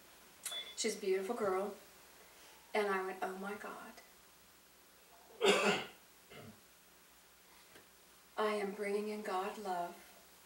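A middle-aged woman speaks slowly and expressively into a microphone, with pauses.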